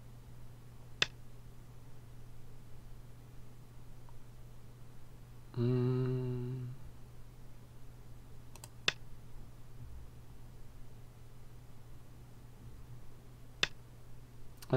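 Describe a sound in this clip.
A game stone clicks sharply onto a board.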